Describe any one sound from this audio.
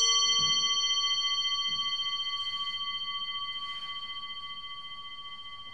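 A singing bowl rings with a bright, shimmering tone that slowly fades.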